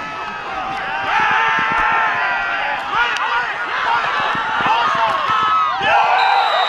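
A large outdoor crowd cheers and shouts, growing louder.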